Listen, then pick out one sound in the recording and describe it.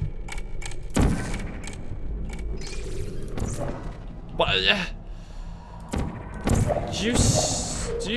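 A portal gun fires with a sharp zap.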